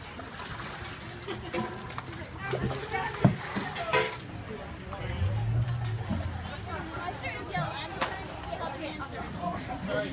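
Water splashes as it is poured from buckets.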